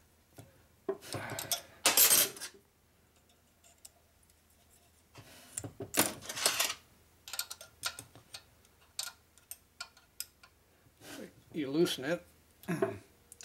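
Metal engine parts clink and tap as hands work on them.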